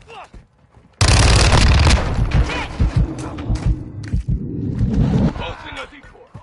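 Rapid gunshots blast loudly in bursts.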